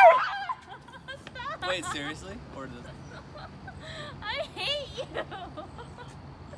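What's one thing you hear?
A young woman talks and laughs casually nearby.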